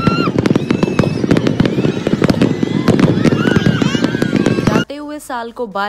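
Fireworks crackle and fizz.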